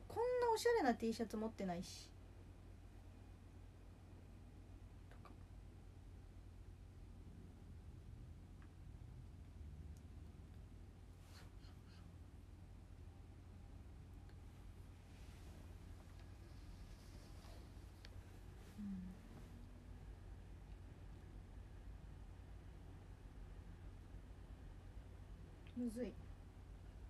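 A young woman speaks briefly and animatedly, close to a microphone.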